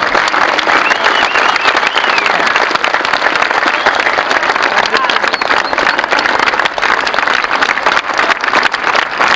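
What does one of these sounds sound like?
A large crowd claps loudly and continuously outdoors.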